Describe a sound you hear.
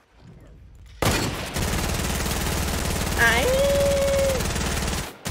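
A rapid burst of gunfire rattles steadily.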